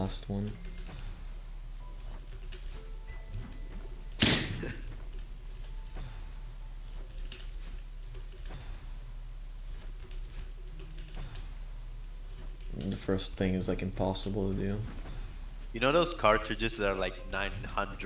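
Short electronic game sound effects whoosh and chime.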